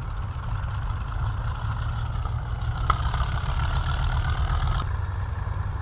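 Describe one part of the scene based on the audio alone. Propeller engines of a plane drone loudly as it taxis past.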